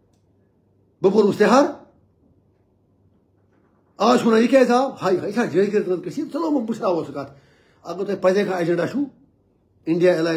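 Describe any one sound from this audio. An elderly man speaks with animation, close to the microphone, in short bursts with pauses.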